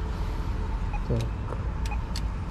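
Keypad buttons click on a door intercom.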